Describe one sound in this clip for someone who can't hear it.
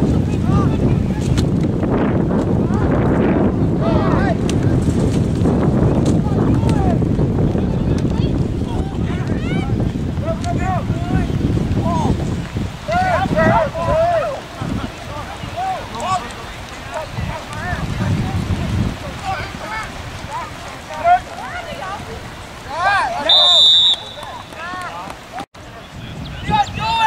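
Men's and women's voices call out across an open field.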